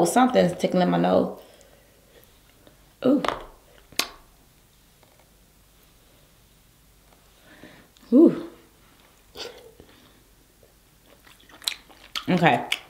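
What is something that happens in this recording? Crab shell cracks and snaps.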